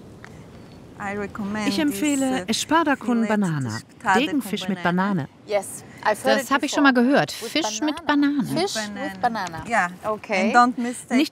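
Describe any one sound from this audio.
A woman speaks warmly and with animation, close by.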